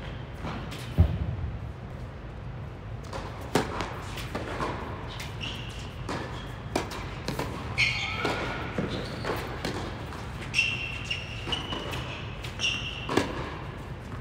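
Tennis balls are struck with sharp pops, echoing in a large indoor hall.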